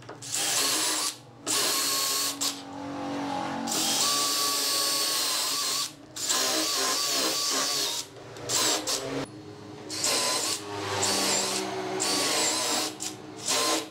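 A cordless drill whirs in bursts, boring into wood.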